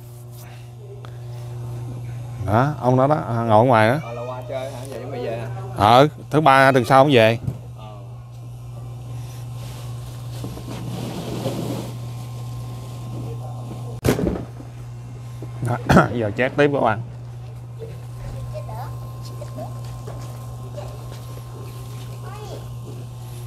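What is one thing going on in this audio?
A rotisserie motor hums steadily.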